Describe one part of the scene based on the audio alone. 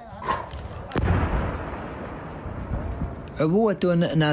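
A loud explosion booms nearby and rumbles away.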